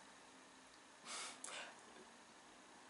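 A young man laughs softly close to a microphone.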